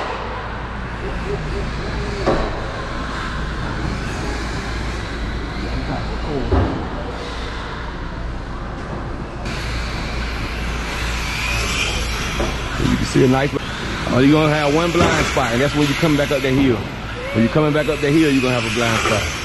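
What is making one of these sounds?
A small electric toy car whirs as it races around a track.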